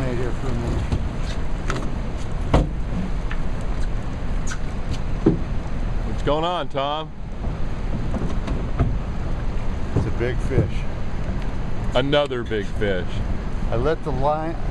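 River water rushes and splashes steadily.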